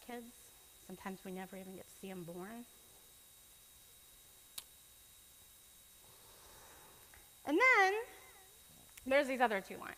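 A woman speaks calmly to an audience.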